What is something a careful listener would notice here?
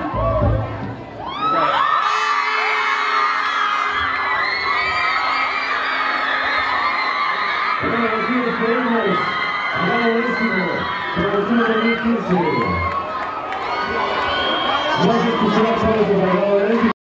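A crowd of young girls screams and cheers excitedly.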